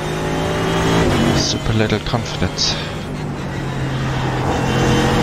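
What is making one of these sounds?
A racing car engine roars at high revs, briefly dropping in pitch as it shifts gear.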